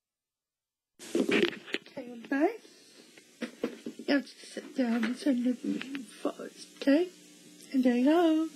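A young girl speaks with excitement, close by.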